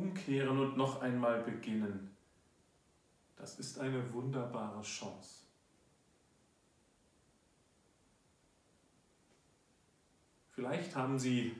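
A man reads aloud calmly, close by, in short phrases with pauses.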